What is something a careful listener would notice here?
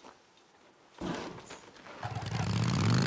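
A motorcycle engine starts up.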